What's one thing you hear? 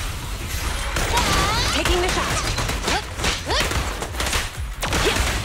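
Energy blasts crackle and whoosh.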